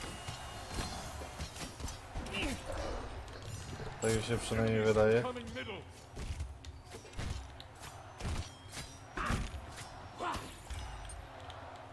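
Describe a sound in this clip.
Weapons clash and strike with sharp impacts in a fight.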